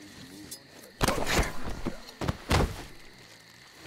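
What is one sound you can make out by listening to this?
Heavy thuds land during a close scuffle.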